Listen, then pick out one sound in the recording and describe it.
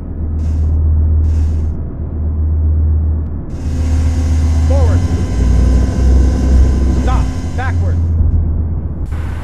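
A helicopter engine drones low and steady.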